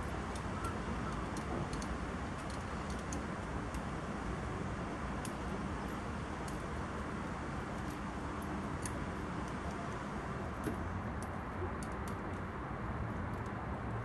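Metal snow chains clink and rattle against a truck tyre.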